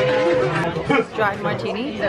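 A crowd chatters in a busy room.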